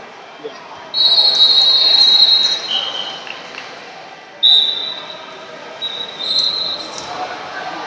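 A referee's whistle blows in short, shrill blasts.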